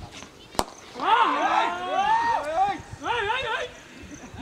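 Men shout and call out loudly across an open field.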